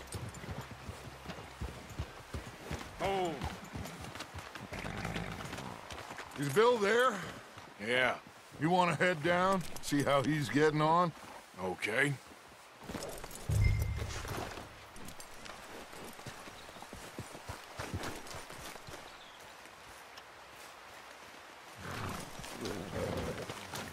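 Horses' hooves plod and crunch on snowy ground.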